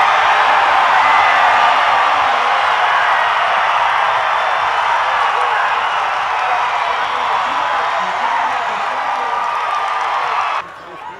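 A large crowd cheers and roars loudly outdoors, slowly fading.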